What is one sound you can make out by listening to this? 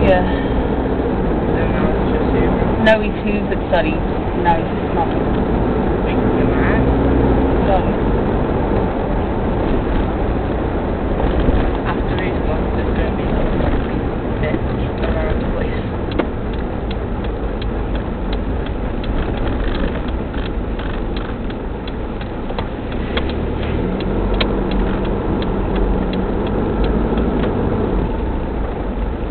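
Tyres hiss and crunch over slushy snow on the road.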